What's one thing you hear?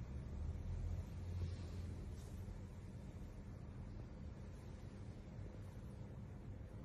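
A sleeping otter breathes softly and snores close by.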